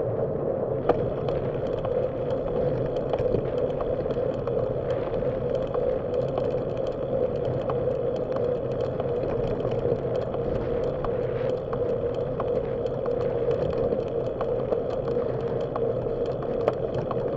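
Bicycle tyres hum and rattle over a paved path.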